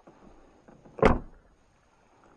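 A car door thuds shut close by.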